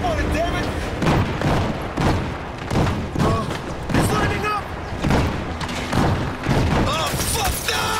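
Explosions boom close by.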